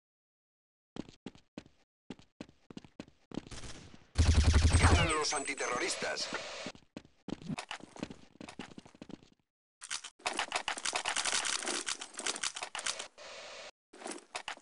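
Footsteps tap quickly on a stone floor.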